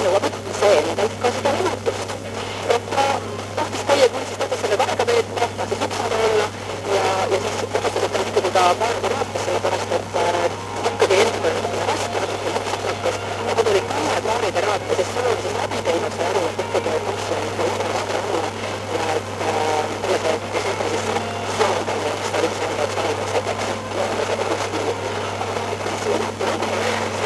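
A radio hisses and crackles with static on a weak station.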